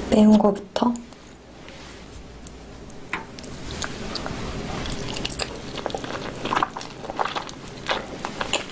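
A young woman chews food noisily, close to a microphone.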